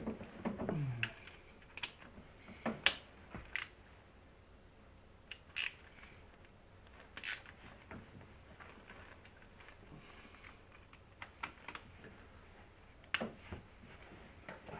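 A metal tool clicks and taps against metal parts.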